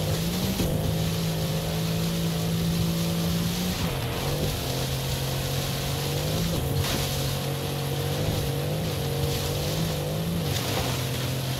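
Tall crops brush and slap against a speeding car.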